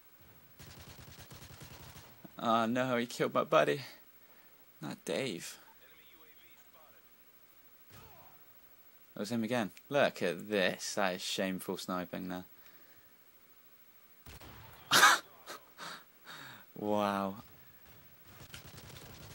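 Gunfire cracks in short bursts.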